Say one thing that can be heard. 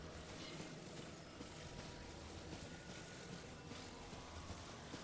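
Footsteps swish through grass.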